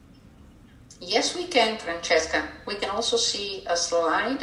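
A second young woman speaks calmly over an online call.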